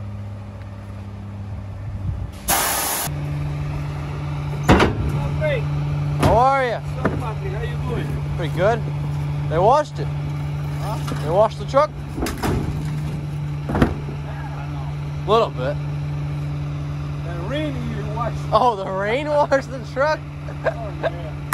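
A garbage truck engine idles with a steady low rumble.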